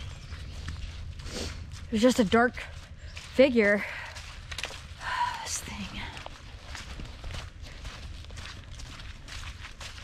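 Footsteps crunch steadily through dry leaves.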